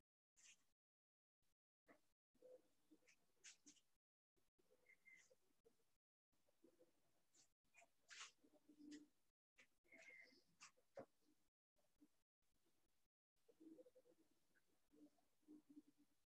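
An eraser rubs softly across a whiteboard.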